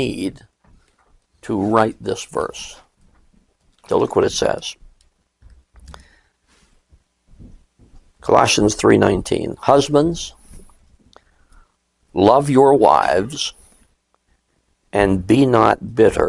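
An elderly man speaks calmly through a clip-on microphone, with short pauses.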